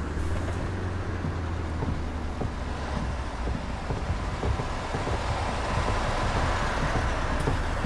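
Footsteps tap on the floor as passengers board.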